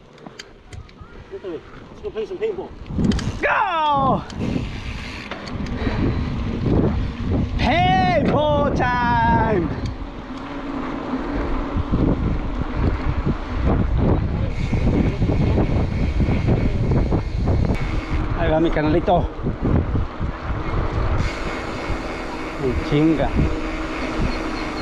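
Wind buffets and rumbles against a moving bicycle rider outdoors.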